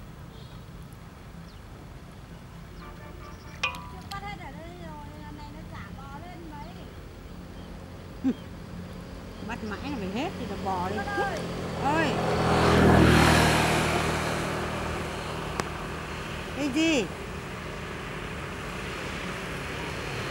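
Bubbles rise and pop on the water's surface.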